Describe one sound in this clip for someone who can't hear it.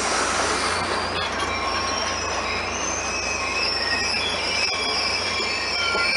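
A diesel train engine idles with a steady, low rumbling hum.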